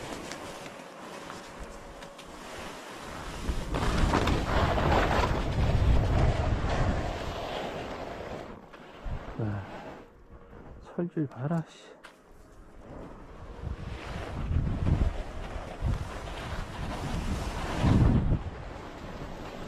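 Skis hiss and scrape over packed snow, loudening and easing in bursts.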